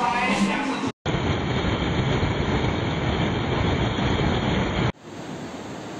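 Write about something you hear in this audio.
A fast river rushes and roars loudly over rocks.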